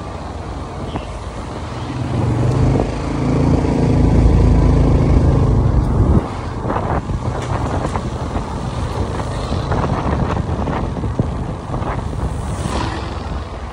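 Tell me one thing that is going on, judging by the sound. Wind rushes past as the motorcycle moves.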